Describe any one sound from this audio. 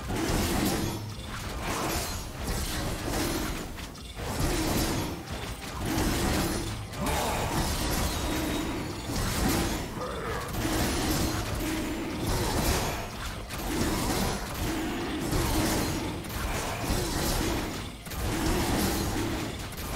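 Fantasy combat sounds of swishing blows and magic effects ring out.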